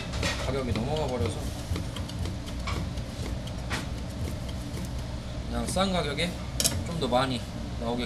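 A knife slices through soft raw fish on a cutting board.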